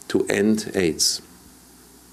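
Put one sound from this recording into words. A man speaks calmly through a loudspeaker.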